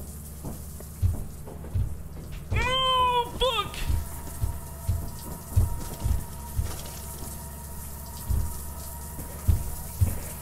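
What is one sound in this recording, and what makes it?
Heavy footsteps thud on a metal floor.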